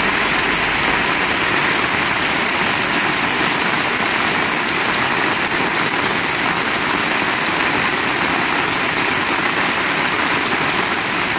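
Rainwater splashes on a wet road.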